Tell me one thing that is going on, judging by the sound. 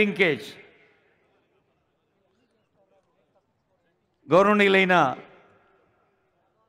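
A man calls out loudly over a loudspeaker in a large echoing hall.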